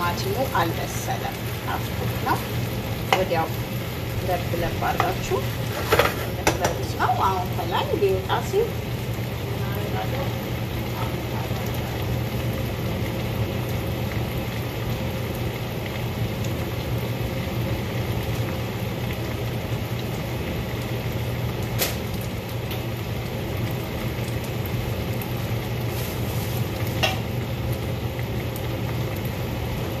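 A gas burner hisses steadily.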